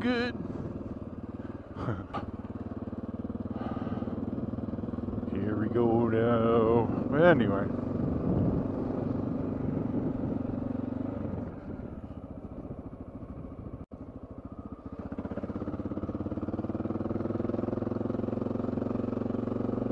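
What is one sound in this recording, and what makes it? A motorcycle engine rumbles up close, rising and falling as it revs.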